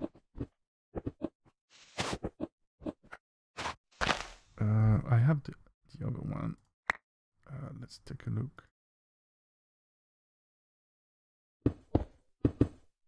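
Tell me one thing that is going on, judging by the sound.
Dirt blocks crunch in short bursts as they are dug.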